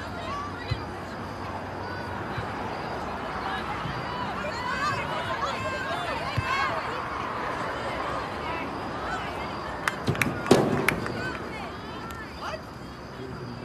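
Young women players shout to each other across the field.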